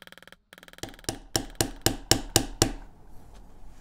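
A mallet taps a metal stamping tool into leather with quick, sharp knocks.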